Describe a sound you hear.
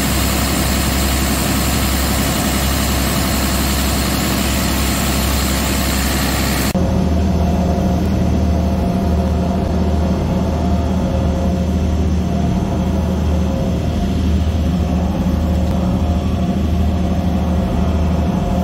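Machinery hums loudly and steadily.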